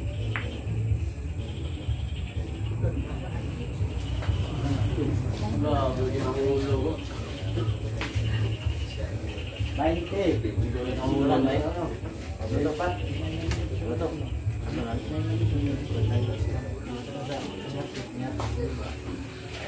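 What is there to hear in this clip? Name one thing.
Pool balls clack together sharply.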